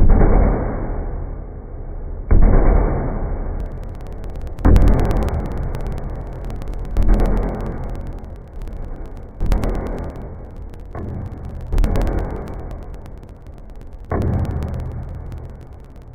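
A drumstick strikes a snare drum slowly, each hit ringing out and fading.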